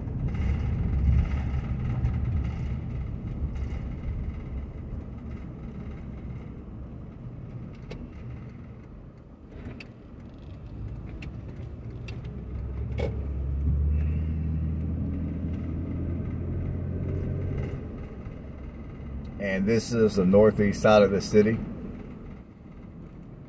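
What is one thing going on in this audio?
A car rumbles steadily along a road, heard from inside.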